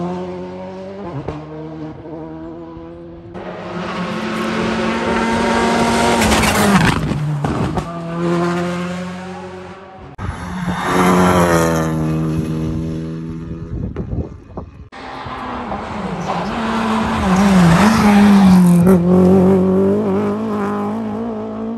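A rally car engine roars and revs hard as the car speeds past close by.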